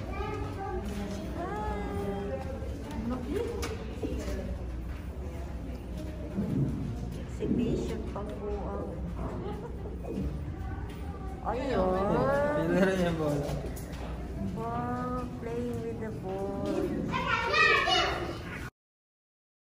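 A woman talks excitedly close by.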